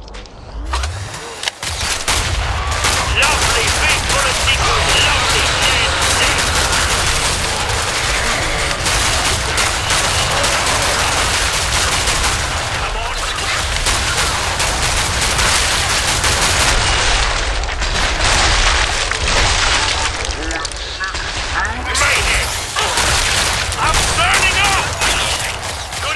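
A rifle fires in rapid bursts of loud shots.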